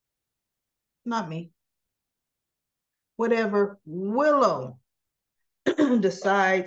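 A woman speaks expressively into a close microphone, in short bursts with pauses.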